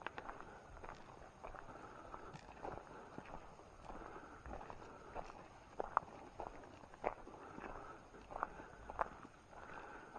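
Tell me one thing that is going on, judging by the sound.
Plants rustle and snap as a person pushes through brush.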